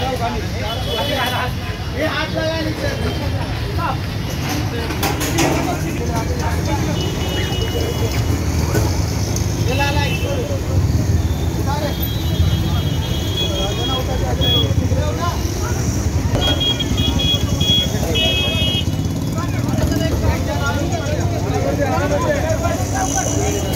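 A crowd of men talk and call out outdoors.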